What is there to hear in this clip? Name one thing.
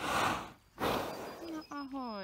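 A horse snorts and blows air close by.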